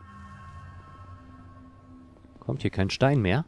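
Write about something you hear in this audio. A soft chime rings and holds, then fades.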